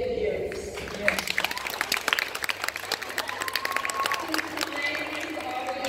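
Children clap their hands.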